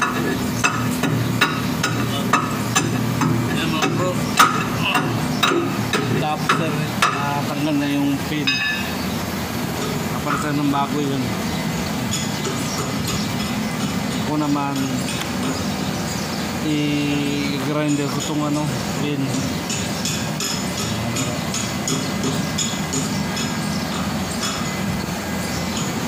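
A heavy engine idles with a steady low rumble.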